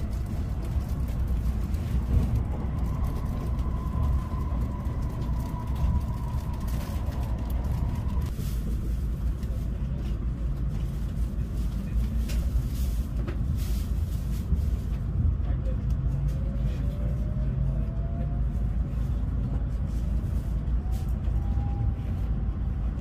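A train rumbles low and steadily along the rails.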